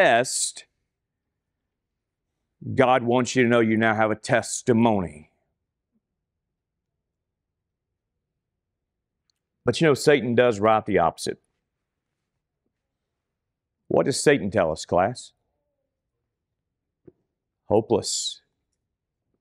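A man speaks calmly and clearly through a microphone, with pauses between phrases.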